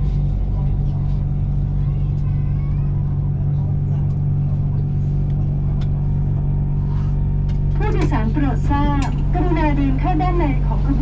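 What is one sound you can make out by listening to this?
A train rolls along with a steady low hum and slows to a stop.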